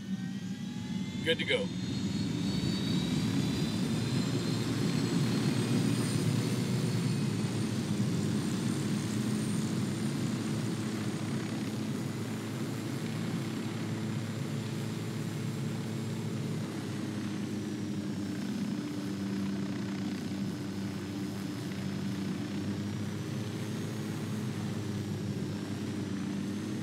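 A helicopter's rotor thumps and its engine drones steadily.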